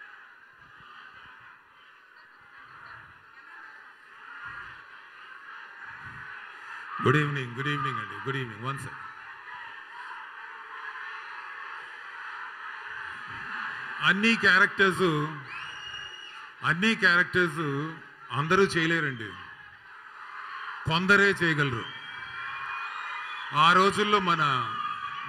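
A large crowd murmurs and cheers in the background.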